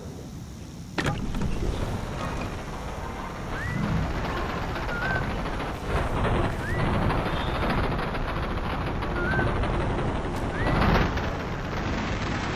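A hover bike's engine roars and hums as it speeds along.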